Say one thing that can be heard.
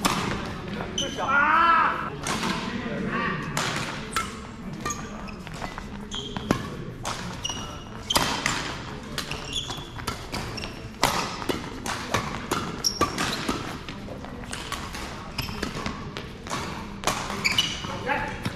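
Sports shoes squeak sharply on the court floor.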